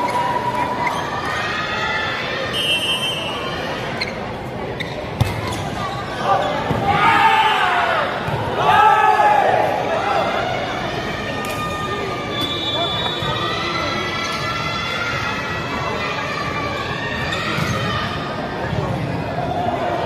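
A crowd of young spectators and players chatter and shout in a large echoing hall.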